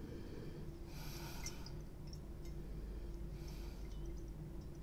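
A man sniffs deeply, close by.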